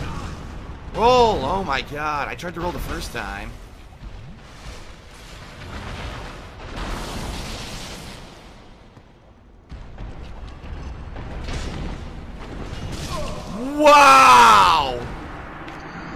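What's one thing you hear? A man shouts loudly in frustration.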